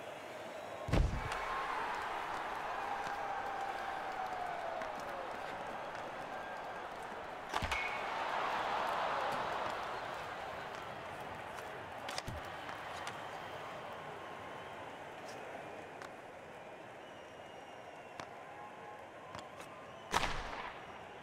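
A hockey stick slaps a puck with a sharp crack.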